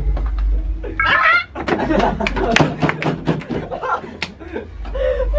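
Young men laugh loudly together.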